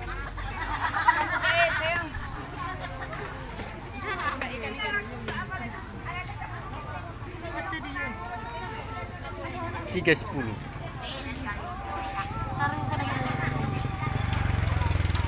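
Many voices chatter in a busy outdoor crowd.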